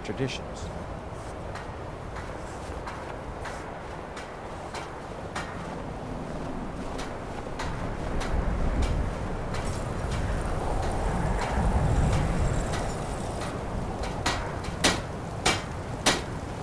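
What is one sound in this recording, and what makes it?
Footsteps crunch on hard ground.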